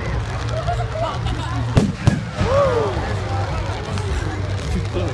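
Fireworks crackle and sizzle as sparks fall.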